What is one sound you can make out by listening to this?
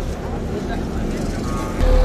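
A small motorcycle passes by.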